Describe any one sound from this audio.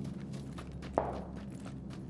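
A gunshot cracks once.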